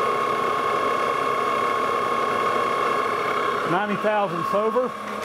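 A lathe motor hums steadily nearby.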